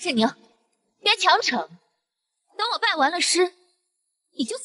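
A young woman speaks coolly in reply.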